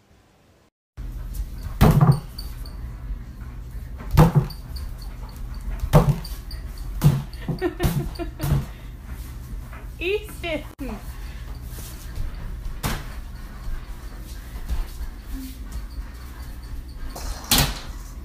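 A plastic bucket bumps and knocks against things.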